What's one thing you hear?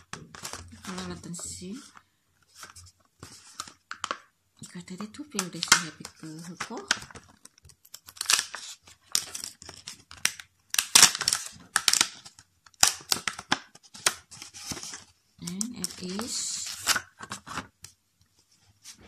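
Plastic packaging crinkles and rustles in someone's hands.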